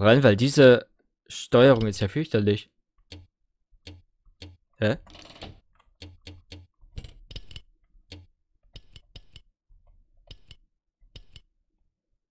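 Menu selection sounds tick softly as options change.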